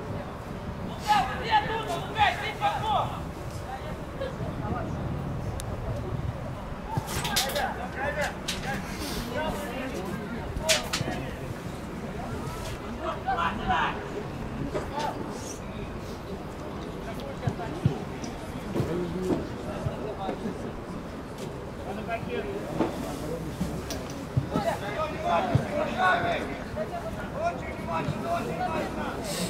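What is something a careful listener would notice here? Men's voices call out nearby, outdoors.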